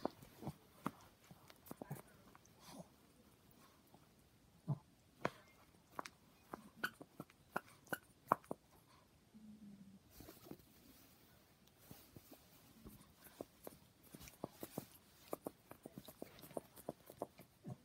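Fabric rustles as a small dog shifts on a bedspread.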